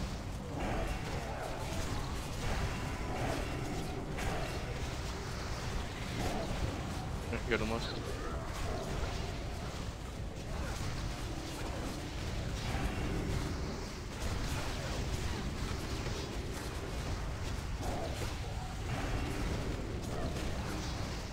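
Magic blasts and explosions crackle in a fast game battle.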